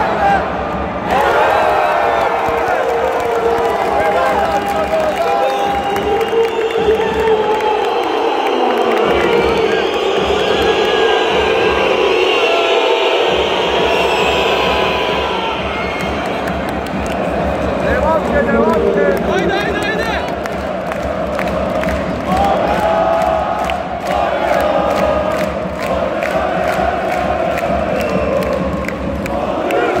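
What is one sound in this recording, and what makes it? A large crowd cheers and chants loudly in a big echoing arena.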